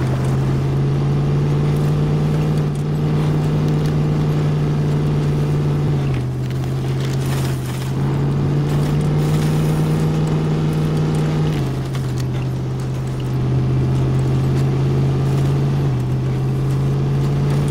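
Truck tyres crunch over rocks and mud.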